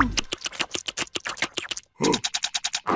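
A cartoon creature makes rapid, squelchy slurping sounds.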